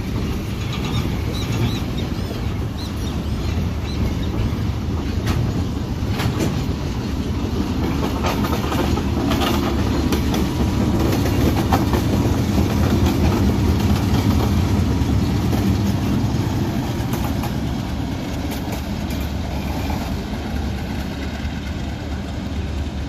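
A diesel locomotive engine rumbles loudly close by.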